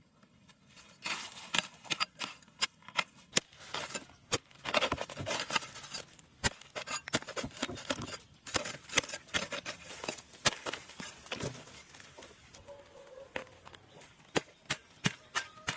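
A hoe chops into dry soil with sharp thuds.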